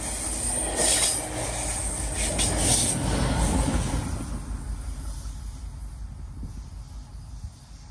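A diesel locomotive engine roars past close by.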